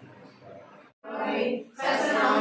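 Women talk loudly close by.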